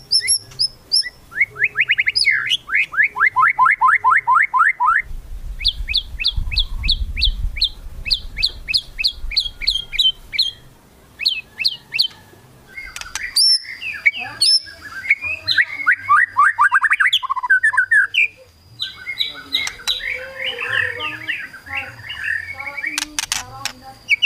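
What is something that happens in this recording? A songbird sings loud, rapid trills and whistles close by.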